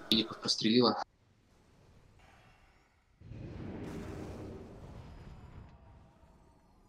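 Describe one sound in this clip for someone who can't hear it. Magic spells crackle and hum in a fight.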